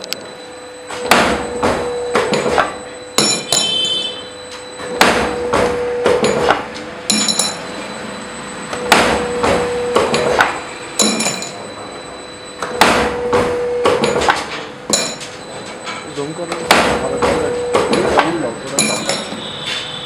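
A machine clanks and thumps repeatedly as a press cycles.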